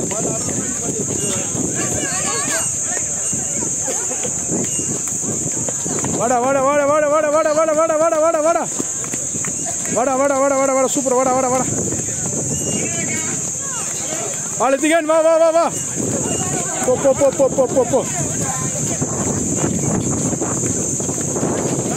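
Children's running footsteps patter on a paved road.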